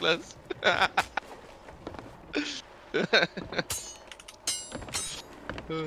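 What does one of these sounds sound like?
A sword swings and clashes in quick strikes.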